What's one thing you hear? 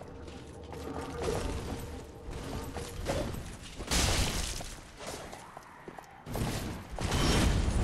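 Heavy footsteps scrape on stone.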